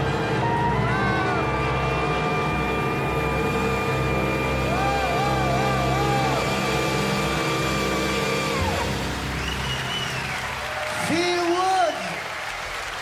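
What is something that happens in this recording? A saxophone plays a melody.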